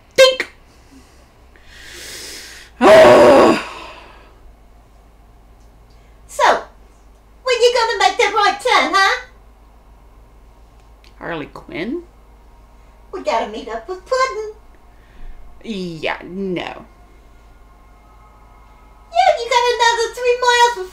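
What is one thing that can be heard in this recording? A woman speaks in bursts, close to a microphone, with pauses.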